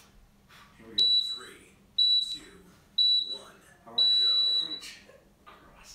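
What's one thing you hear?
An electronic timer beeps three short times, then once long.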